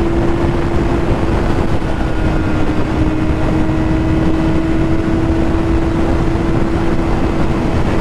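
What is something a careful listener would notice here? A motorcycle engine hums steadily at high speed.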